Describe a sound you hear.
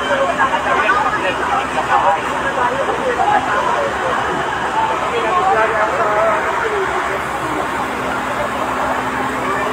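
A crowd of men shouts and talks loudly close by, outdoors.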